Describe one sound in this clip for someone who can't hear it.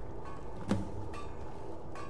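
A campfire crackles nearby.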